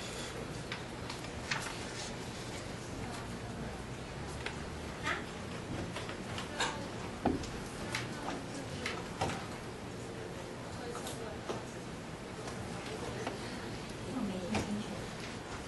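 A woman speaks steadily through a microphone in a room with a slight echo.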